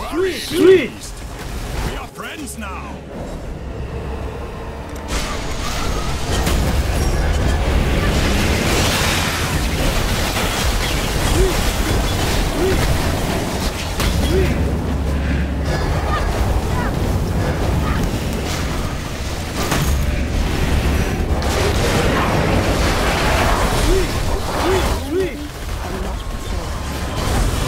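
Game spell effects crackle and boom continuously.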